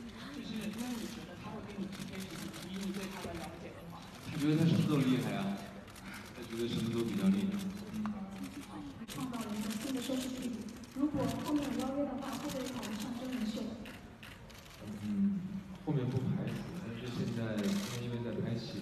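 A young man speaks calmly into a microphone, heard through loudspeakers in a large room.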